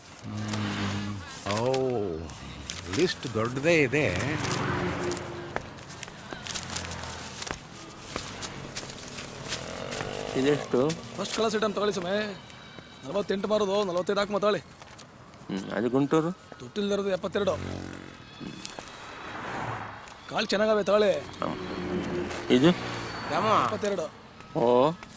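An elderly man talks back calmly.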